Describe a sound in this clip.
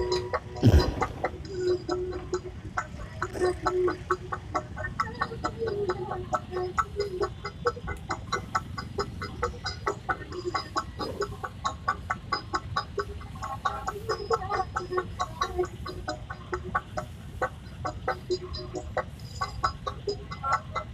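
Motorcycle engines idle and rumble in traffic nearby.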